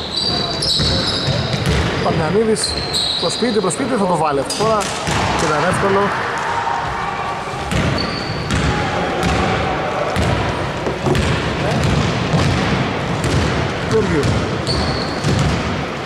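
Men shout and call out across an echoing hall.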